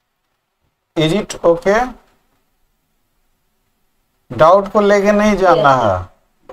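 A middle-aged man speaks calmly over an online call, in two short bursts.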